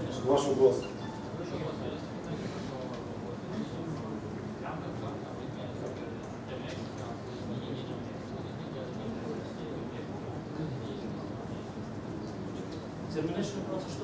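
A man speaks calmly in a large room.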